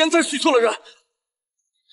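An elderly man speaks in a low, calm voice.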